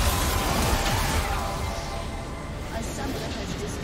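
Spell effects crackle and boom in a game battle.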